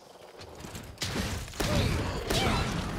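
Fiery blasts boom and crackle loudly.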